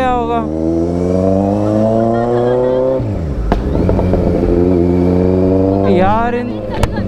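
A motorcycle engine roars up close, rising in pitch as it revs and dropping at each gear change.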